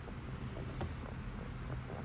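A hand brushes against stiff paper.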